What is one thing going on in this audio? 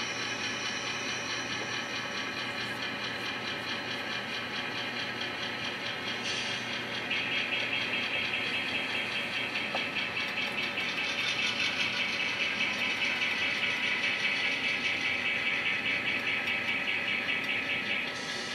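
An N-scale model diesel locomotive hums as it moves along the track.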